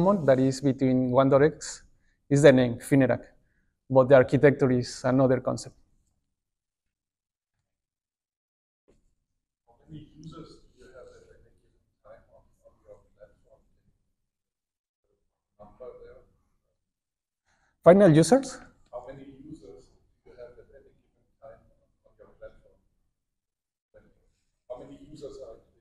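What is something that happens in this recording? A man speaks through a microphone in a large room, with long pauses.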